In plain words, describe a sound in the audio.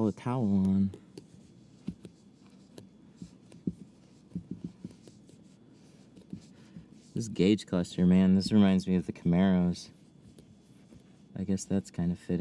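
Plastic film crinkles and rustles softly as it is handled.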